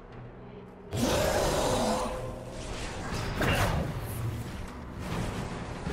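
Fire roars in bursts.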